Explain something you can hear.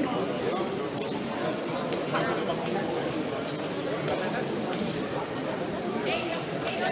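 A crowd of people chatters throughout a large echoing hall.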